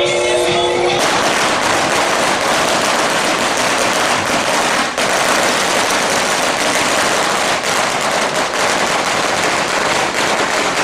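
Firecrackers crackle and pop rapidly nearby.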